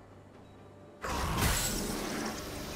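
Magical spell effects whoosh and crackle loudly in a video game.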